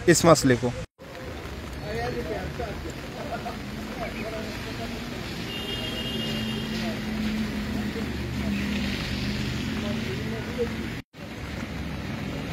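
Water laps gently against a muddy shore.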